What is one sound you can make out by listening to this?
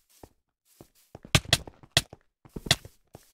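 A sword strikes with sharp hits.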